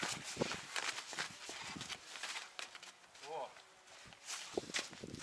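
Hooves and footsteps crunch on snow.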